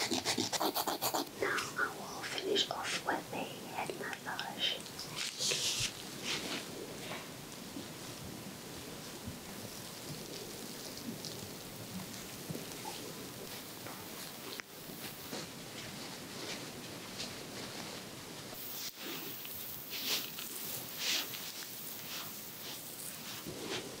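Fingers rub and scratch softly against hair and skin close by.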